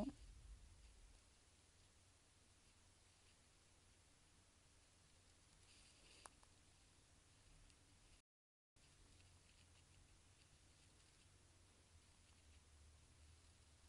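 Fingers tap and scratch softly on a plastic phone case close by.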